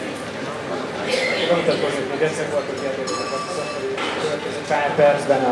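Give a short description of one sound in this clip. A man speaks through a microphone over loudspeakers in a large hall.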